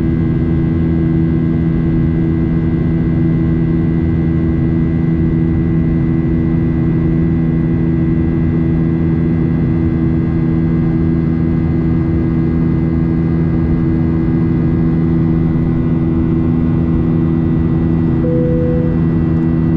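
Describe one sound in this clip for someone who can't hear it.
A jet engine drones steadily with a loud, even roar from inside the cabin.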